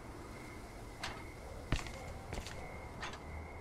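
Footsteps sound on a hard floor.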